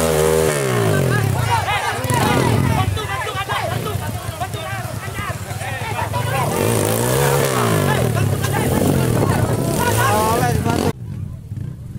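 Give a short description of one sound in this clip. A dirt bike engine revs loudly and roars.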